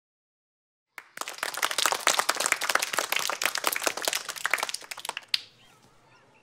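A group of children clap their hands.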